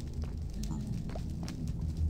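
Fire crackles.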